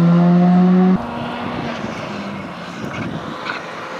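A distant rally car engine drones as it approaches on a winding road.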